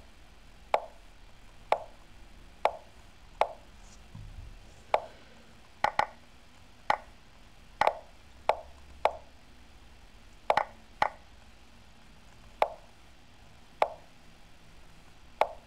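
Sharp wooden clicks of chess moves sound every second or so.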